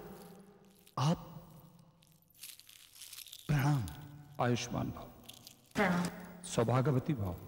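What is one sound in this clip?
A man speaks in loud, dramatic bursts, with a ringing echo after each.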